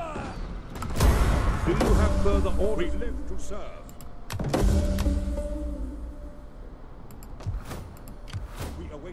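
Game menu clicks and chimes sound as panels open and close.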